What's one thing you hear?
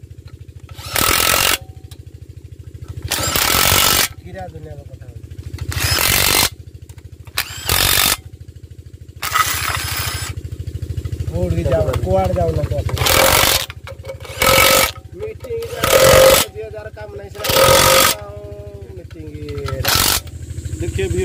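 An impact wrench whirs in short, loud bursts.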